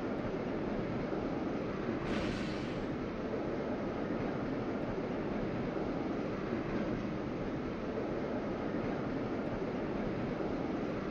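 A metro train rumbles along rails through a tunnel.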